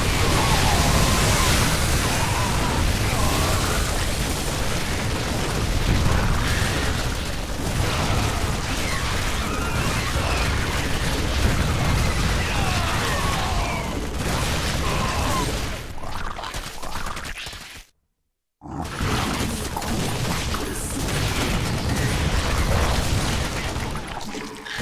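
Rapid gunfire rattles in a battle.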